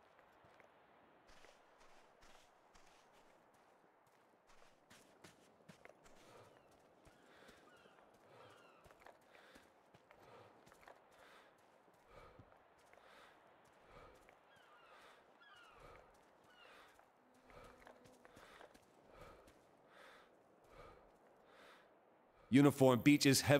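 Footsteps crunch steadily on sand and through leafy undergrowth.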